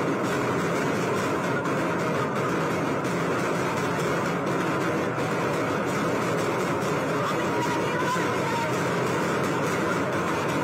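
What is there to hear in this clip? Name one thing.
Loud music plays over loudspeakers.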